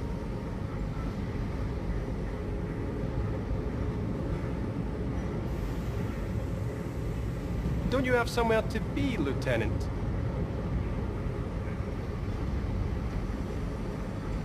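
A deep machine hum drones steadily.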